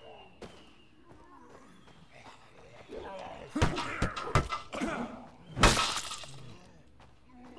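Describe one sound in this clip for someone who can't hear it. Blows thud as men fight a figure on the ground.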